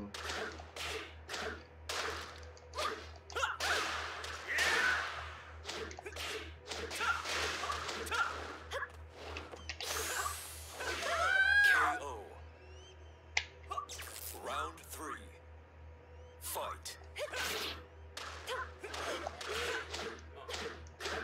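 Punches and kicks land with sharp thuds and smacks.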